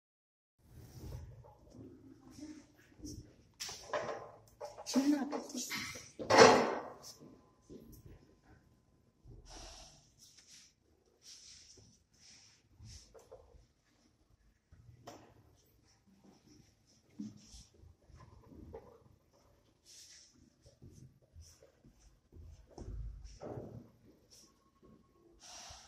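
Sand softly rustles and scrapes as a hand sweeps it across a surface.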